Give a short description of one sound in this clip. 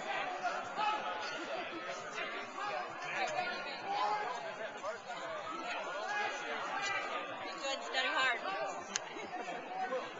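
Young people chatter nearby outdoors.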